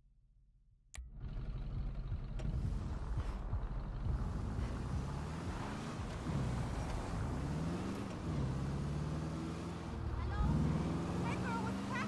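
A car engine idles and revs, rising and falling in pitch.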